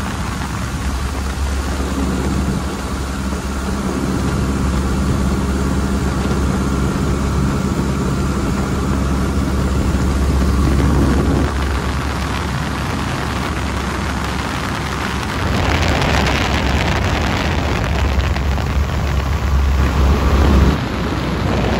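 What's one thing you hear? Wind rushes loudly past an open cockpit.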